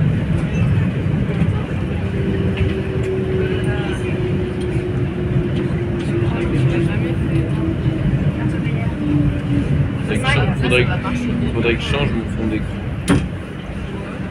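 A train rumbles steadily as it rolls into a station.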